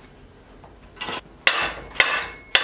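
A metal rod clanks against a steel vise.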